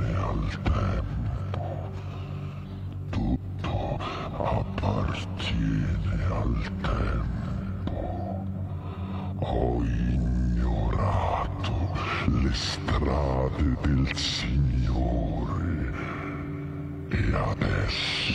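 A man makes strange vocal sounds close to a microphone.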